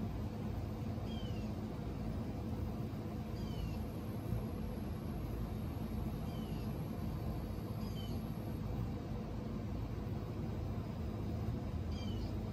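A hummingbird gives short high chirps.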